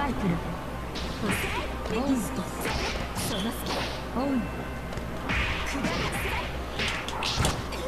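Sharp hits and blasts crash in quick bursts.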